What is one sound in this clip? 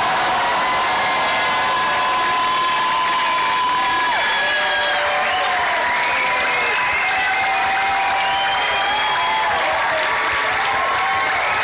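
A large crowd cheers and screams loudly in an echoing hall.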